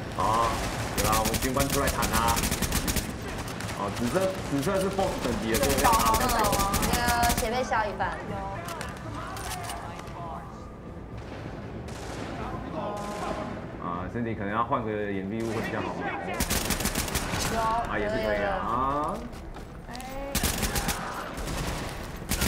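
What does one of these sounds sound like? Rapid gunfire bursts from a video game.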